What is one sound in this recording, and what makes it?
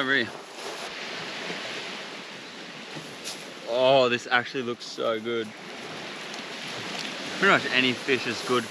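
Small waves lap gently on a beach.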